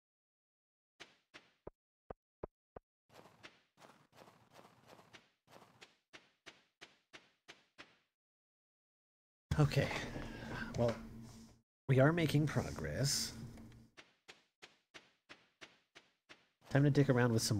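Footsteps crunch quickly and steadily on snow.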